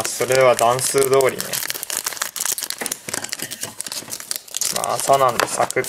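A foil packet crinkles and rustles in hands.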